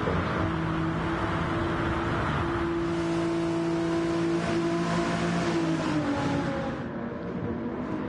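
A car engine hums steadily at high speed, then fades.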